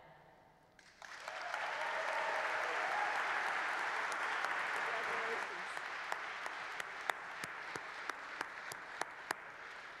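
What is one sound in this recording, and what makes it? A woman claps her hands.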